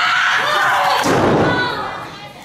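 A body thuds heavily onto a ring mat.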